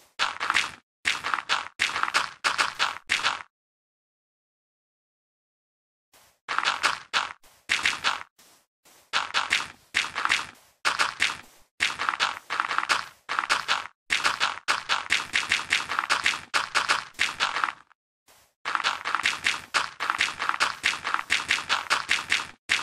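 Blocks of earth are placed one after another with quick, soft thuds.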